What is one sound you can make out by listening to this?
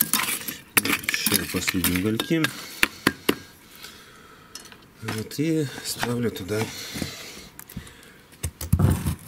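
A metal poker scrapes and knocks against the floor of a fireplace.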